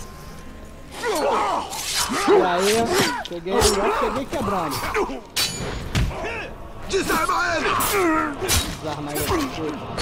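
Creatures grunt and snarl as they fight.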